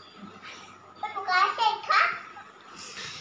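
A young boy speaks with animation close by.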